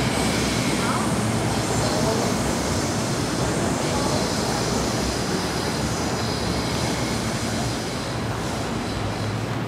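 A busy city street hums with steady traffic and crowd noise.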